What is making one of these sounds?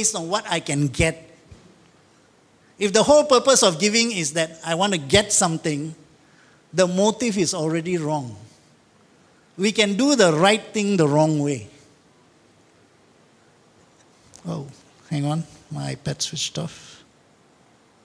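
An elderly man speaks through a microphone in short, emphatic phrases, in a hall with some echo.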